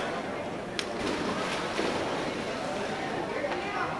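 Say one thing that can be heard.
Water splashes as a swimmer swims.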